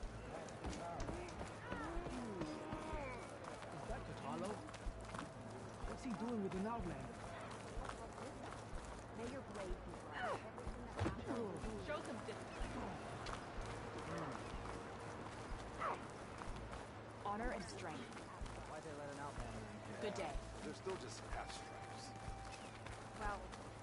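Footsteps crunch on snow and stone steps.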